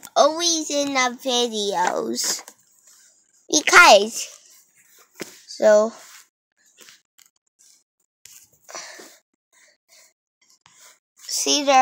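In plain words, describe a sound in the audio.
A young girl speaks playfully in a high, sing-song voice close by.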